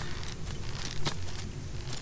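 Magic bolts whoosh and crackle during a fight.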